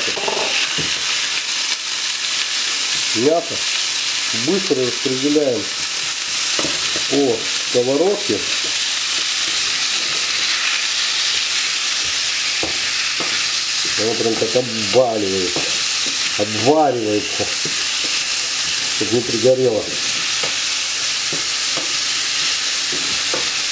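Meat sizzles steadily in hot oil.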